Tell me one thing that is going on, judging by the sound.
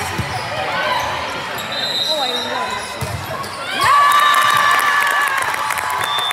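Sneakers squeak on the hard floor.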